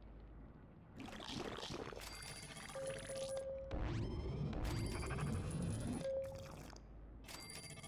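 Bright game chimes ring as items are collected.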